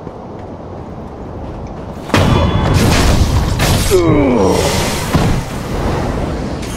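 A sword slashes and strikes sharply several times.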